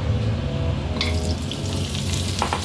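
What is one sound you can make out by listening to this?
Pieces of meat sizzle as they drop into a hot pan.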